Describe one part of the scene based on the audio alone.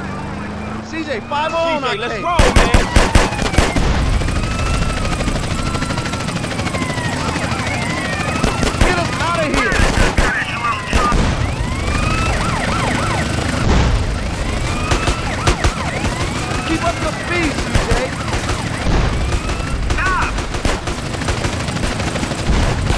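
Police sirens wail, rising and falling.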